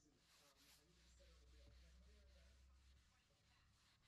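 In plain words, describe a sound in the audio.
A cloth rubs softly across a panel.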